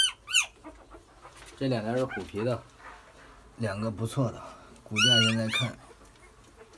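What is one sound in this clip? Puppies whimper and squeal in high voices.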